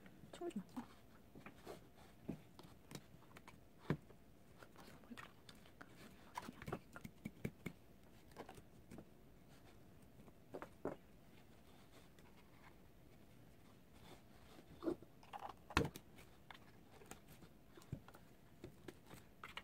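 A plastic comb taps and clicks against a plastic stand.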